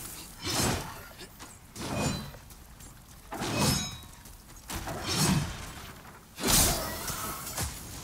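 Heavy sword blows whoosh and strike with loud impacts.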